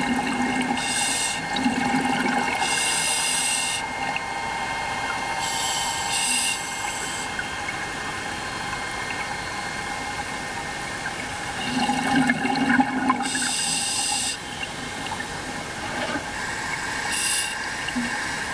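Bubbles burst from a diver's breathing regulator underwater in short, regular gushes.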